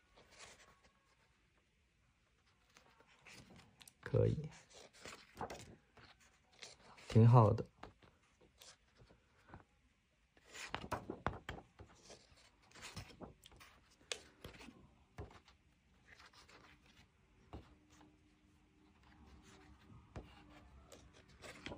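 Paper pages rustle and flip as a book is leafed through.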